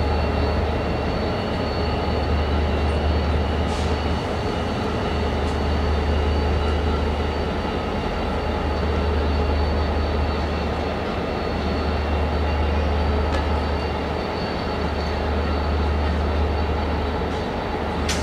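A diesel locomotive engine rumbles and idles loudly as it creeps slowly along.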